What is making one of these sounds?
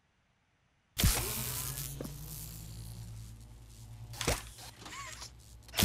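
An electric beam fires with a loud crackling hum.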